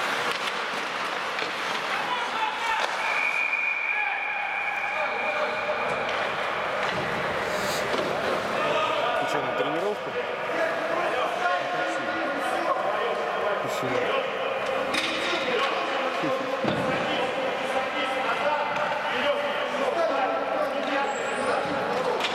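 Skates scrape and glide across ice.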